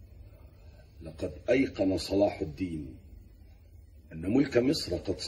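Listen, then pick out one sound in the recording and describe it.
A man speaks gravely and with emphasis, close by.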